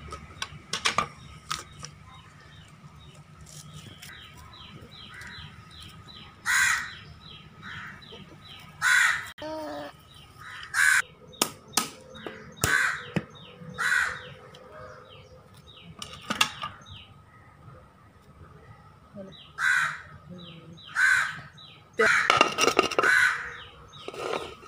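A blade scrapes and chops at a coconut shell.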